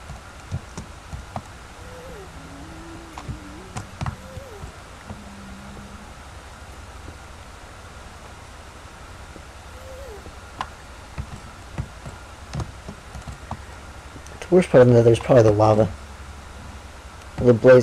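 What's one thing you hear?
A pickaxe chips at stone with short, dull knocks.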